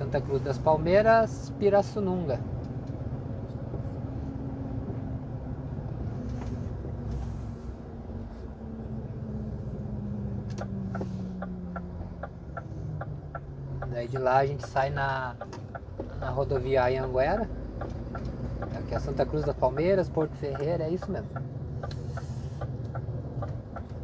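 A vehicle's engine hums steadily while driving.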